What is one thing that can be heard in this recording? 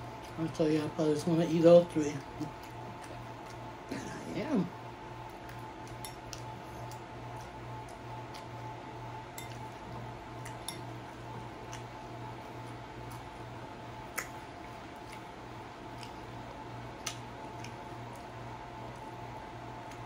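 A taco shell crinkles and crunches softly under fingers.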